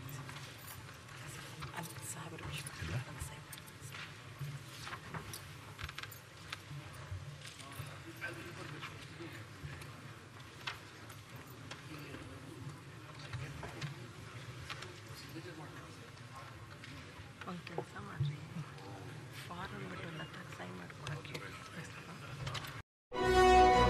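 Many men murmur and talk at once in a large echoing hall.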